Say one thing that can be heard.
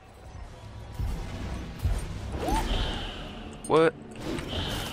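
Game blows and magic effects crash during a fight.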